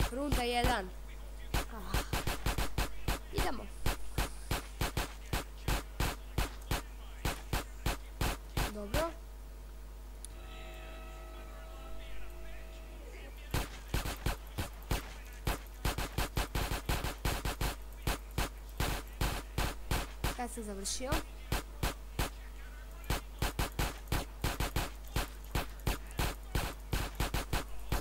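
Rapid pistol shots fire in quick bursts, echoing off hard walls.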